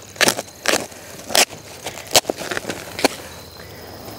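Plastic sheeting rustles and crinkles as it is pulled and tugged.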